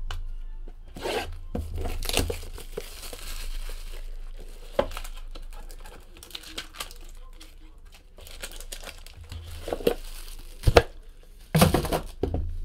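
Plastic wrapping crinkles and rustles as it is torn off a box.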